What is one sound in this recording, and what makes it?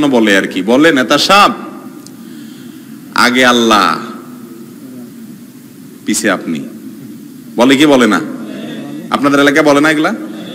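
A man preaches forcefully into a microphone in short bursts, with pauses between phrases.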